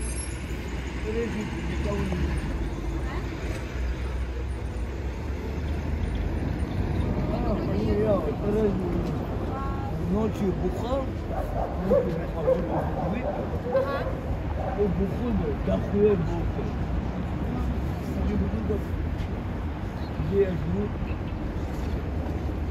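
People chatter outdoors in a busy crowd.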